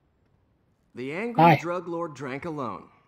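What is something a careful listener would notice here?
A young man speaks calmly and wryly, close by.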